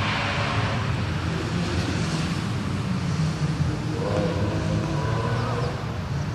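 A rally car engine roars past nearby, shifting gears.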